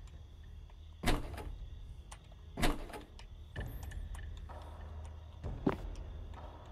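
Wooden doors bang open with sharp knocks.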